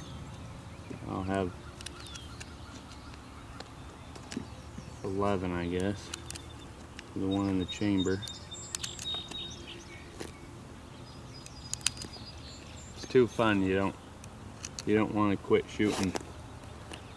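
A man speaks close by in short phrases.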